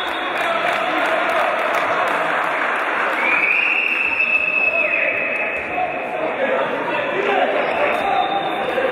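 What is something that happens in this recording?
Spectators cheer and chatter in a large echoing hall.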